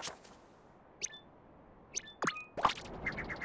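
Short electronic menu blips sound.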